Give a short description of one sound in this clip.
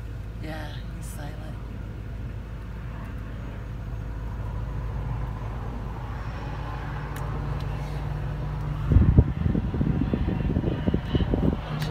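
A vehicle engine hums steadily from inside a moving car.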